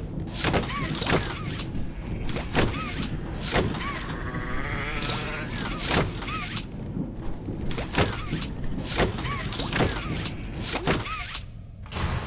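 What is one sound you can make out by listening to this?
A mechanical grabber line shoots out and snaps back with sharp metallic zips.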